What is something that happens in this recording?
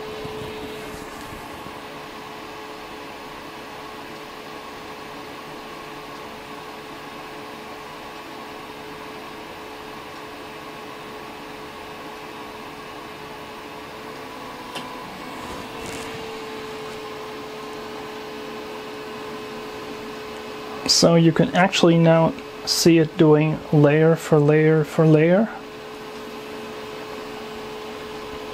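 A machine hums steadily throughout.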